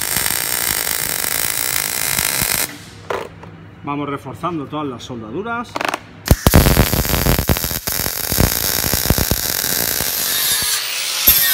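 An electric welder crackles and hisses loudly.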